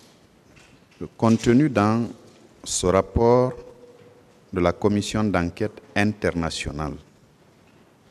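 A man speaks calmly and formally into a close microphone.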